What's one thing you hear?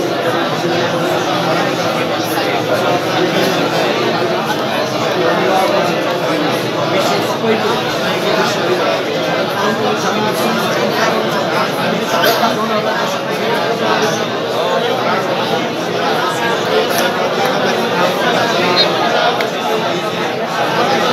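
A man speaks loudly and with animation to a gathering in an echoing room.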